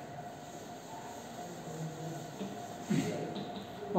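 A cloth rubs across a chalkboard.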